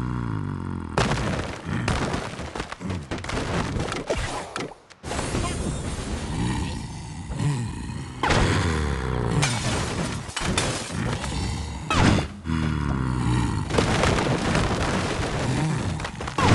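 Game sound effects of wooden blocks crashing and toppling play repeatedly.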